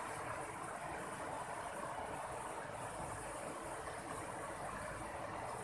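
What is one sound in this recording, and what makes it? A river rushes steadily over rocks.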